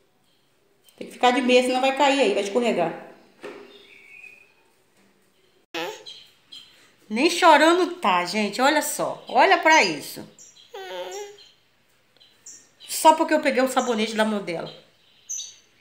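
A young woman talks calmly and playfully close by.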